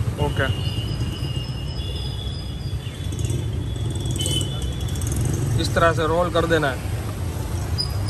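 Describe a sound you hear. Hands squeeze and tear soft fried bread.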